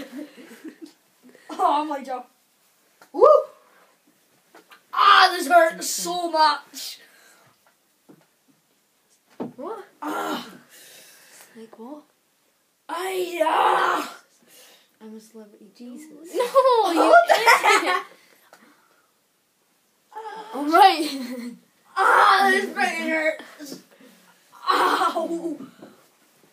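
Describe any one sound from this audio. A boy speaks excitedly in short bursts, close by.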